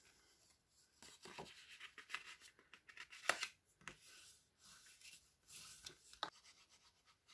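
A bone folder scrapes along a paper crease.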